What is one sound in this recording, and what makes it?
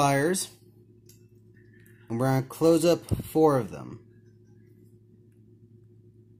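Metal pliers click as they grip a small ring.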